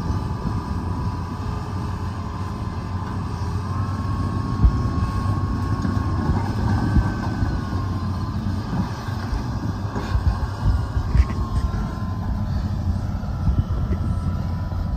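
A heavy diesel engine rumbles and roars steadily outdoors.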